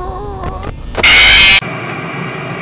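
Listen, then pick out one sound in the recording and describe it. A loud burst of static hisses.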